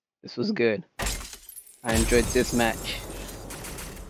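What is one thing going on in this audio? Glass shatters with a sharp crash.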